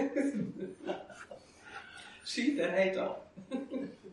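An elderly man laughs.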